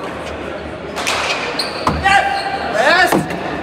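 A ball smacks hard against a wall and echoes.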